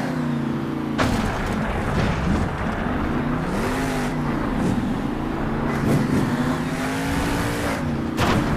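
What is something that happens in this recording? A heavy truck lands with a loud thud on dirt.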